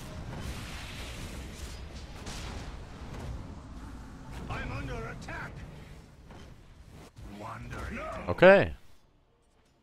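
Fantasy battle sounds of spells and blows clash and whoosh.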